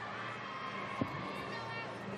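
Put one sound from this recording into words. A gymnast's hands smack onto a metal bar with a sharp thud in a large echoing hall.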